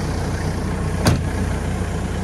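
A cab door slams shut.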